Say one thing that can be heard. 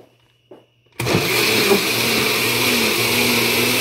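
A blender motor whirs loudly and steadily.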